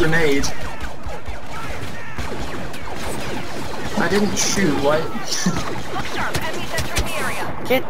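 Laser blasters fire in short bursts.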